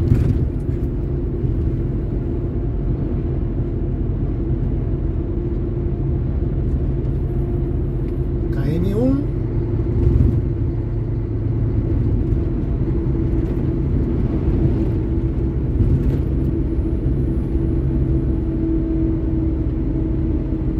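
A vehicle's engine hums steadily as it drives along a road.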